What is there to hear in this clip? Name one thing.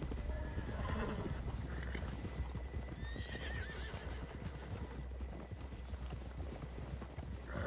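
Horse hooves crunch through deep snow at a steady walk.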